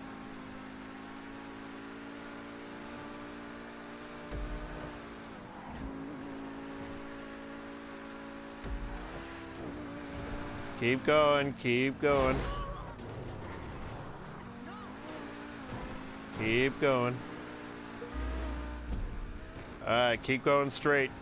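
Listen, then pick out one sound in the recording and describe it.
A sports car engine roars steadily, rising and falling in pitch as it shifts gears.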